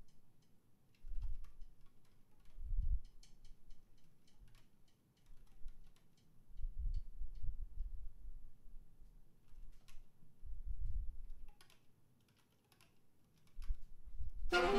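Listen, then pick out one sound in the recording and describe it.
A drummer plays a drum kit with kicks and cymbal taps.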